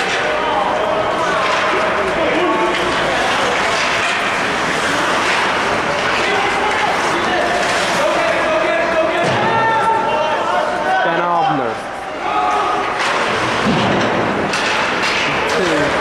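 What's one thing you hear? Skates scrape across ice in a large echoing hall.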